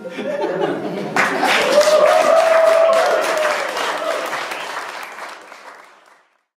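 A small jazz band plays live and the music slowly fades out.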